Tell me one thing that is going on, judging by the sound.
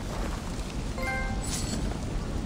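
A short rising chime plays.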